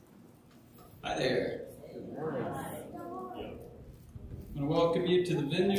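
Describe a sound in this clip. A man speaks into a microphone, heard over loudspeakers in a large room.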